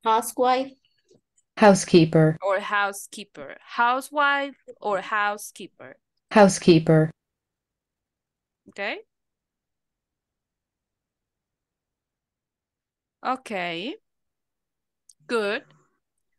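A woman speaks with animation through an online call, with pauses.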